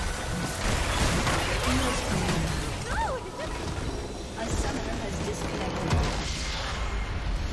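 Computer game fighting effects clash and burst.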